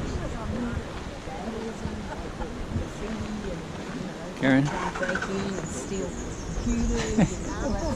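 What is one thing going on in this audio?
A woman talks cheerfully close by.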